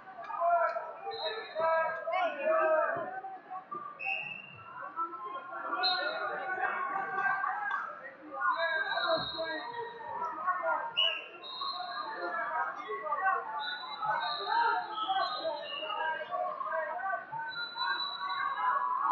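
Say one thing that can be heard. A crowd of people chatters loudly in a large echoing hall.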